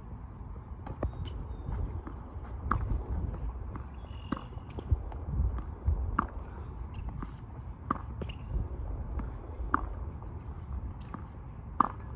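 Tennis balls are struck with rackets, popping back and forth.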